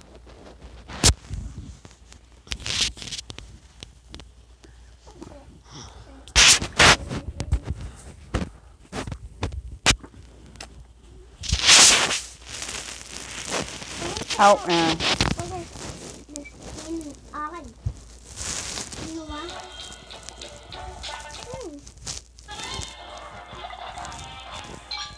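Short bright game chimes and pops sound as cartoon blobs drop into a basket.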